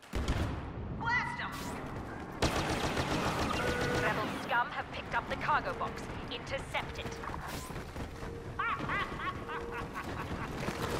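Laser blasters fire in quick zapping bursts.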